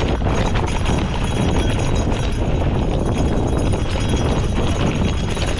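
Wind rushes loudly over a microphone outdoors.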